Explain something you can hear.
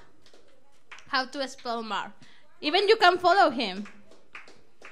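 A woman speaks loudly and excitedly into a microphone.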